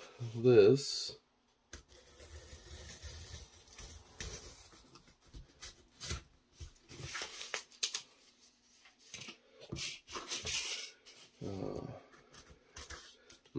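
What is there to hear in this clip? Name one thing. A craft knife scrapes and cuts through foam board.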